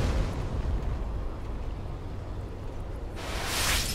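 A wall of fire roars.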